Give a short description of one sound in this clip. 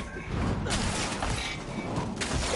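An explosion bursts with a crackle of sparks.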